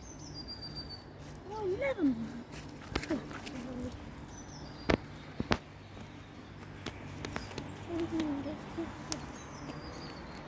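A dog's paws rustle through dry leaves and undergrowth close by.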